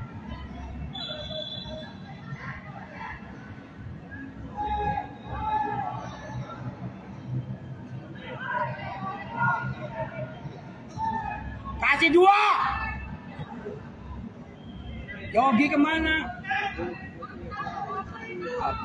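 Players shout to each other across an open field, echoing off an empty stadium.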